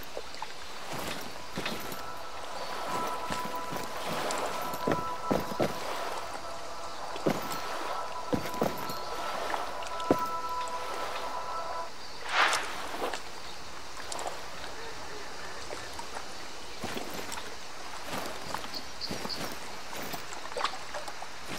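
Footsteps crunch on gravel and thud on wooden boards.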